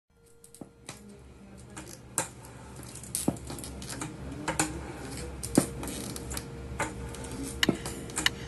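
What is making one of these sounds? Crutches knock on a hard floor.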